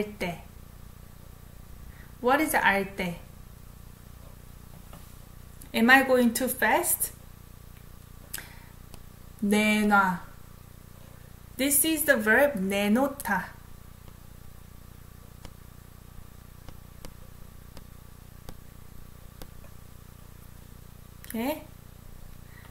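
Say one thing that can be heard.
A young woman speaks in short, lively phrases close to a microphone, with long pauses between them.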